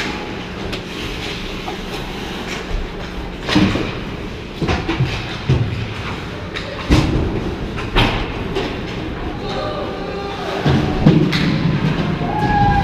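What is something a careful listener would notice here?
Ice skates scrape and hiss across the rink.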